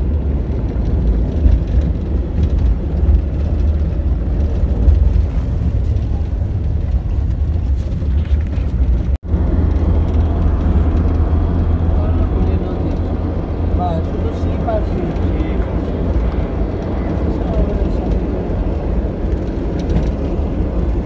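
A vehicle engine hums and rumbles steadily from inside the car.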